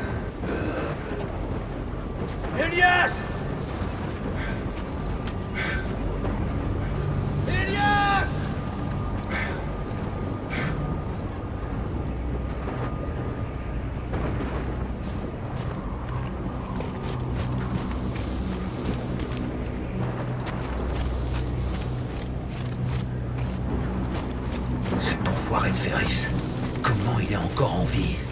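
Wind howls steadily through a blizzard.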